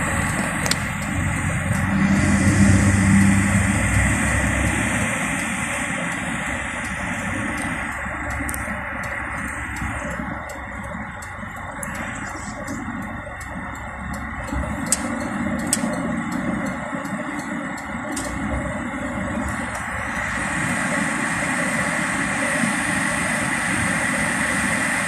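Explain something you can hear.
Rain patters on a car windscreen.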